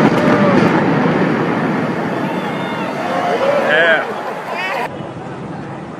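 A building collapses with a deep, rumbling roar.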